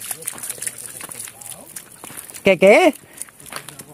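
A dog's paws crunch on wet gravel.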